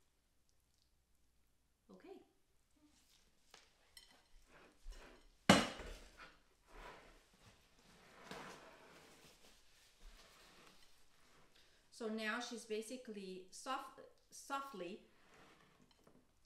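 Food pieces drop into a dish.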